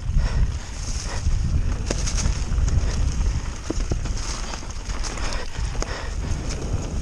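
Wind rumbles loudly over a moving bicycle.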